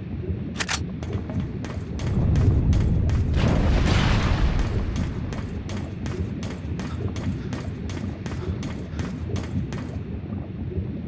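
Footsteps run quickly across a metal grate.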